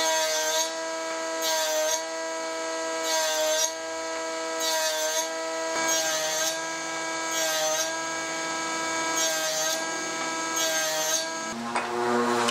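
A saw blade cuts into wood in repeated short bursts.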